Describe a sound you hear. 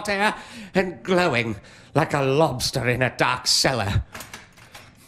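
A middle-aged man reads out dramatically into a nearby microphone.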